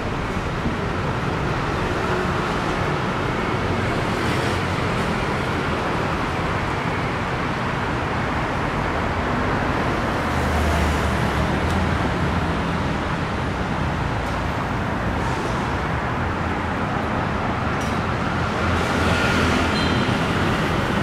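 Footsteps tap along a pavement.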